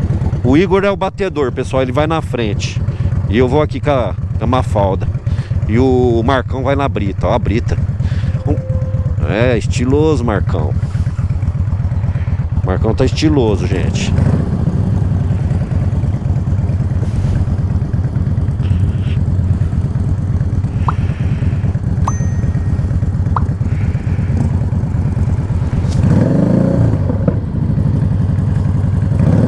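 A motorcycle engine idles close by with a steady, low rumble.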